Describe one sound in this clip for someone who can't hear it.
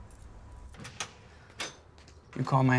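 A man knocks on a door.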